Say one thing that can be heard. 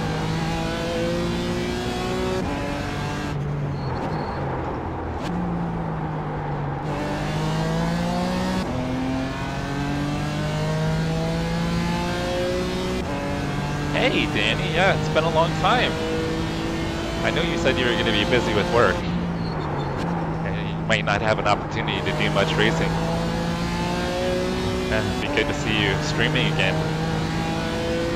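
A race car engine revs high and shifts gears up and down.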